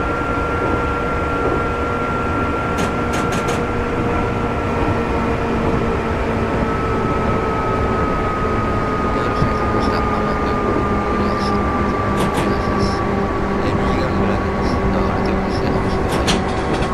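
An electric train motor hums with a steady whine that slowly drops in pitch.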